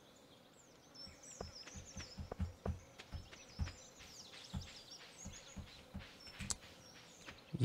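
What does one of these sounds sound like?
Light footsteps patter quickly on a dirt path.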